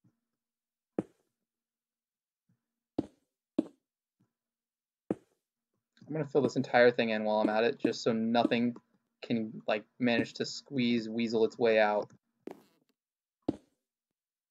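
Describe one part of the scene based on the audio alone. Stone blocks are placed with short, dull knocks.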